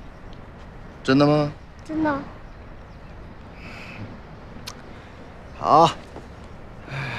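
A young boy speaks in a high voice.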